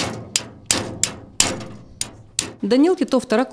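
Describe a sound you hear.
Metal strikes metal in sharp, ringing clanks.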